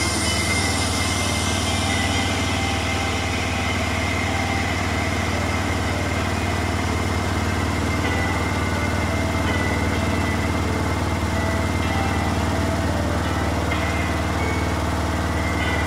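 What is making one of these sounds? Water sloshes inside a washing machine drum.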